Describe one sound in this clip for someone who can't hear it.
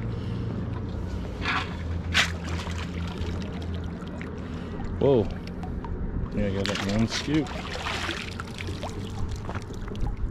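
A metal sand scoop scrapes through stones in shallow water.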